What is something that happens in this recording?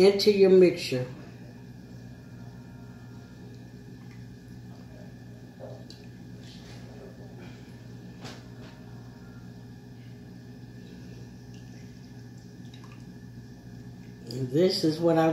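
Liquid pours from a can into a metal pot.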